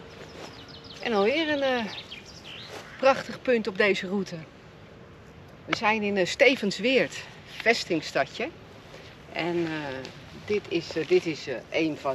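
A middle-aged woman talks calmly and clearly close by, outdoors.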